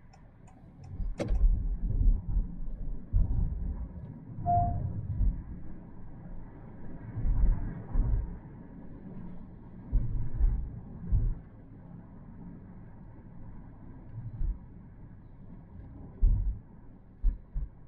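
A man talks calmly inside a car, close by.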